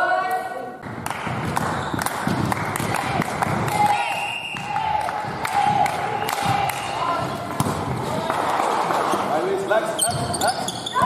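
Volleyballs thump sharply as players hit them, echoing in a large hall.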